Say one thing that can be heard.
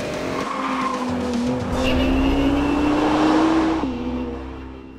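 A sports car engine roars as the car accelerates past.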